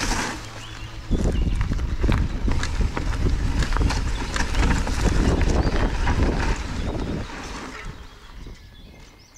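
Bicycle tyres rumble and crunch over a dry dirt trail.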